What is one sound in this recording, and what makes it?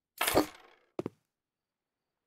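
A short electronic click plays from a computer game.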